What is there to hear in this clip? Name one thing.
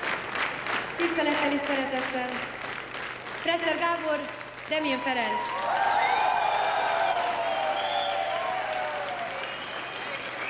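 A woman sings into a microphone over loudspeakers.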